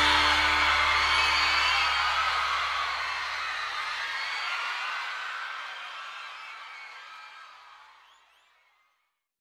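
A large crowd cheers and applauds, then fades away.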